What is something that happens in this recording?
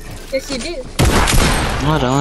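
A shotgun fires a loud blast.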